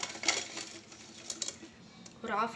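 Crisp fries tumble out of a crinkling plastic bag onto a plate.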